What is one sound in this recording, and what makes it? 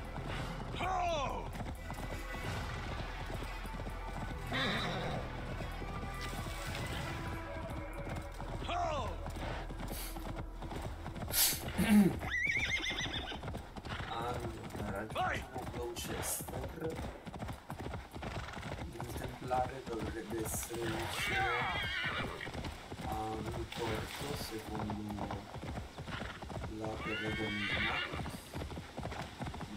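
A horse's hooves thud steadily on grass.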